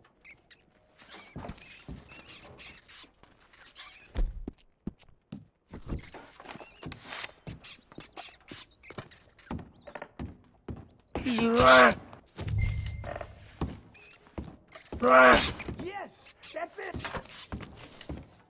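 Boots thud on creaking wooden floorboards.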